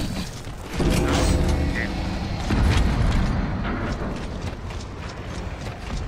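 Heavy booted footsteps thud as a soldier runs.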